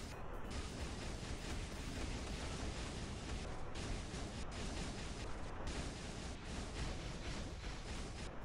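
Loud game battle effects crash and whoosh constantly.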